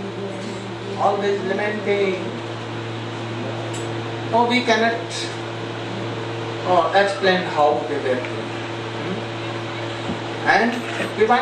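An elderly man speaks slowly and calmly into a microphone, with pauses.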